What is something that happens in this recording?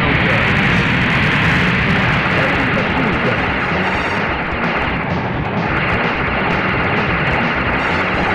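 Rapid gunfire rattles in a fast, steady burst.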